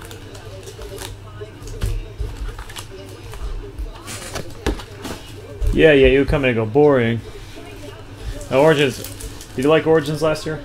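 Plastic wrappers crinkle and rustle in hands close by.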